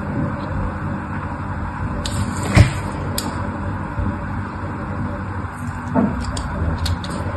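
A thin blade scrapes and cuts into soft soap with light crackling.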